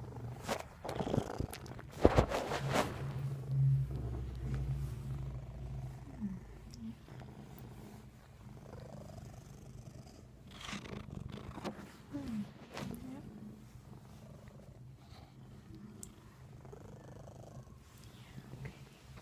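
A phone rubs and knocks as it is handled close to the microphone.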